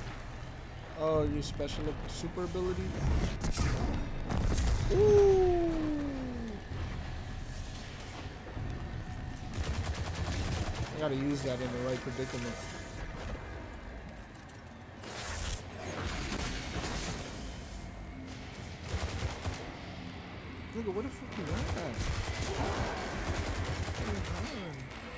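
A young woman talks with animation into a nearby microphone.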